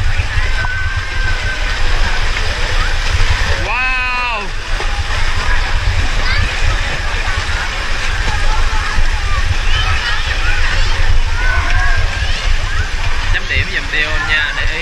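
Children shout and call out in the distance, outdoors.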